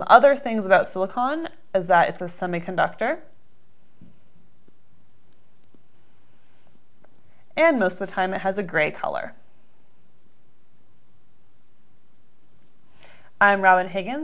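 A young woman speaks calmly and clearly into a close microphone, with pauses.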